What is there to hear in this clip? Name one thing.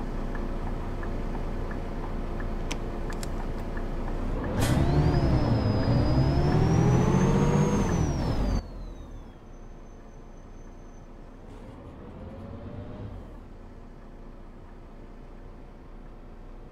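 A bus engine hums steadily.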